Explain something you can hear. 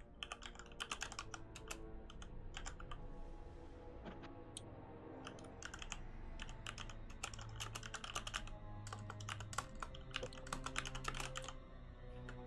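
Game music and spell effects play steadily.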